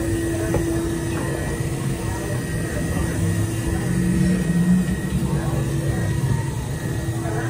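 Footsteps walk on a hard floor.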